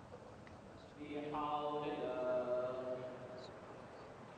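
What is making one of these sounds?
An elderly man chants a long drawn-out call through a microphone in a large echoing hall.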